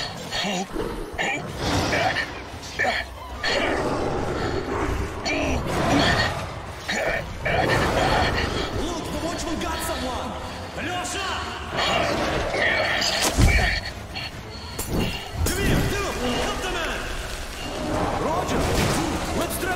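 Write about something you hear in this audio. Monsters snarl and roar close by.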